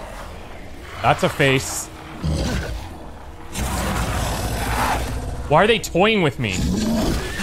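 A large beast growls and roars loudly.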